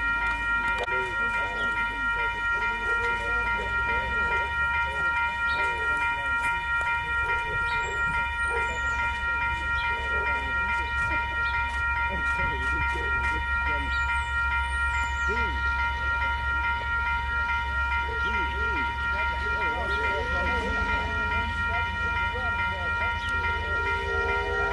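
A level crossing bell rings in a steady repeating beat.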